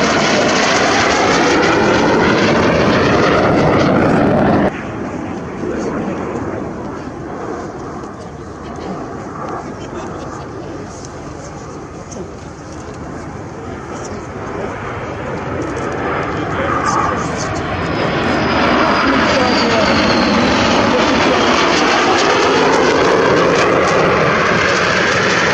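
Jet engines roar overhead, rising and falling as aircraft pass.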